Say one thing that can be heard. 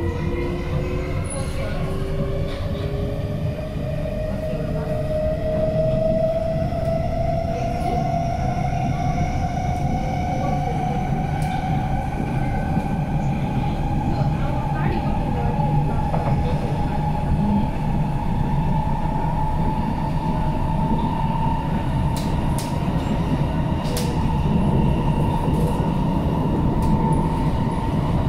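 An electric metro train's motors whine, rising in pitch as the train speeds up.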